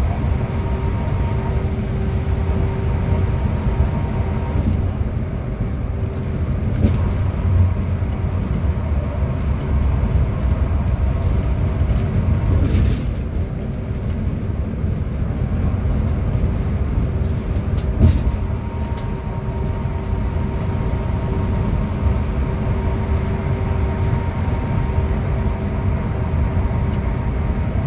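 Tyres roar on the road, echoing in a tunnel.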